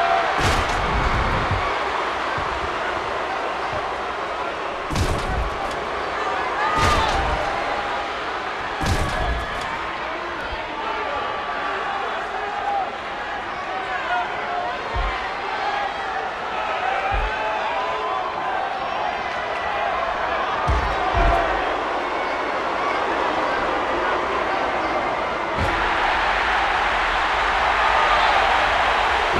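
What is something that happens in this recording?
A large crowd cheers and roars steadily, swelling near the end.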